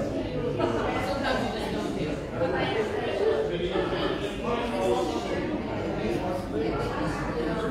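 A man speaks steadily into a microphone in a large echoing hall.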